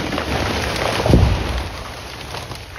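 A heavy tree crashes to the ground with a deep thud.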